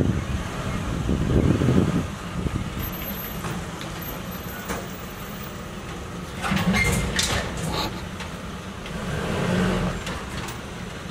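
Debris clatters and thuds as it is tossed into a truck.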